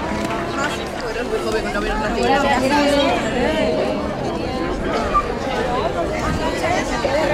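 Women talk close by with animation.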